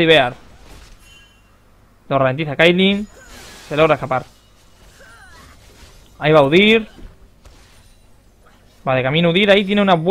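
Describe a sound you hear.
Magic spells whoosh and crackle in a game battle.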